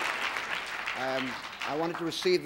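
An older man begins speaking into a microphone.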